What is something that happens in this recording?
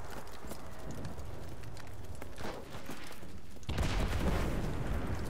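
Boots thud on dirt as a soldier walks.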